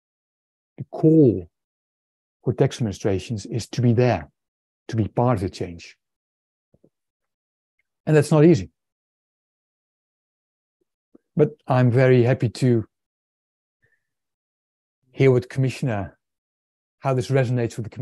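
A middle-aged man speaks with animation over an online call, in short bursts with pauses.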